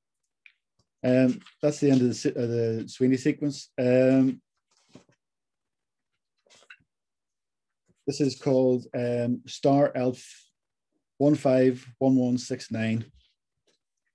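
A middle-aged man speaks calmly, close to the microphone, in pauses, as if over an online call.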